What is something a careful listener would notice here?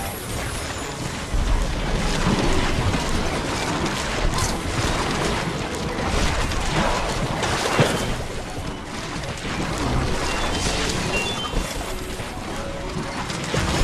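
Video game sound effects pop, zap and crash rapidly without pause.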